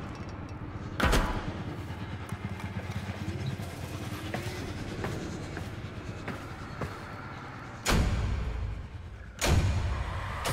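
Heavy metal clanks boom through a large space.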